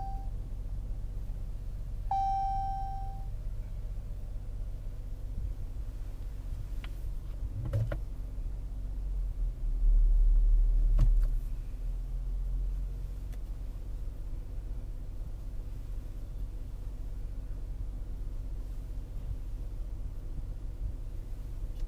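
An SUV's V6 engine idles.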